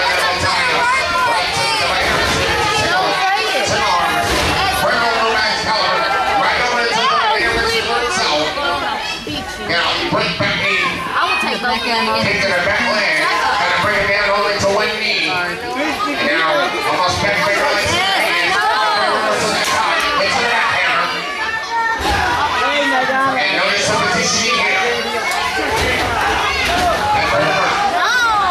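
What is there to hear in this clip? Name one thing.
A crowd cheers and shouts in a large echoing hall.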